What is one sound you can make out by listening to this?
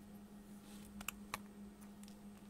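A small circuit board taps lightly against a hard surface.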